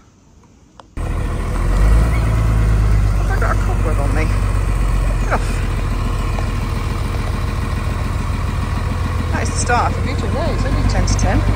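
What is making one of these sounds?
A large truck engine rumbles and drives slowly past.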